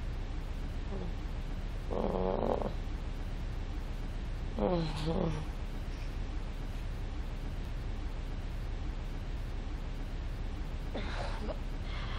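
A young woman speaks weakly in short, tired phrases close by.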